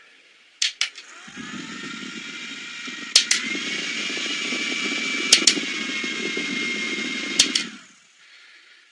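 A small electric fan whirs steadily.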